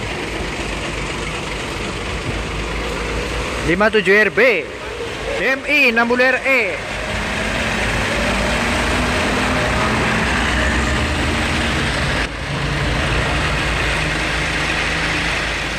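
A bus engine rumbles as the bus passes close by.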